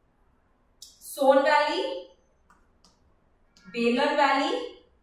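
A young woman speaks clearly into a nearby microphone, in two short phrases.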